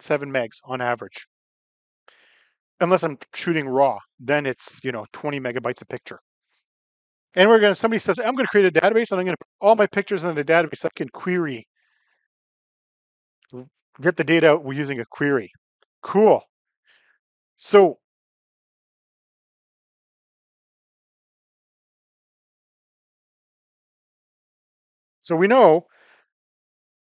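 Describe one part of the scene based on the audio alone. A man speaks calmly and steadily into a microphone, pausing between phrases.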